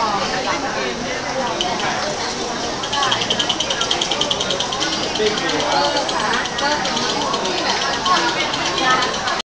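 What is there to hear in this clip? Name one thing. A baby babbles nearby.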